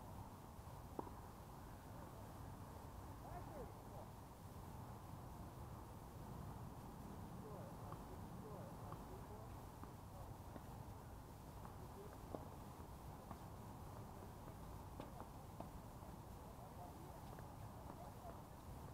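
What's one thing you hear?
Tennis balls pop off rackets at a distance, outdoors.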